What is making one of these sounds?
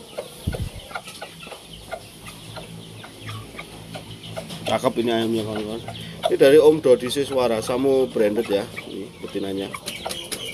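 A chicken pecks at grain on sandy ground with quick light taps.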